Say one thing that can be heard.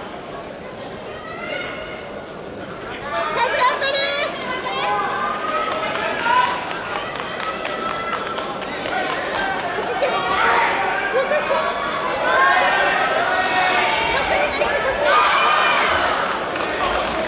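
A crowd of young men and women shouts and cheers in a large echoing arena.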